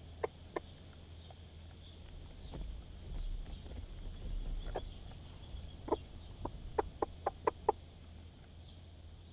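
A chick cheeps with high, short peeps throughout.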